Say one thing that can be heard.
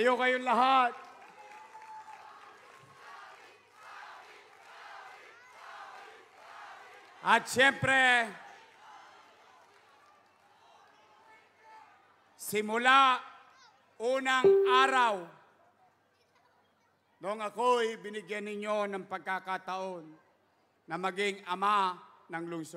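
A man speaks loudly through a loudspeaker system to a large outdoor crowd.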